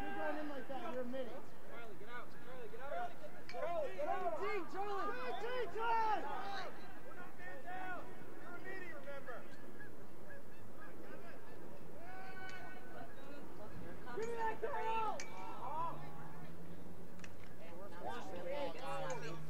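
Young men shout and call out to one another outdoors.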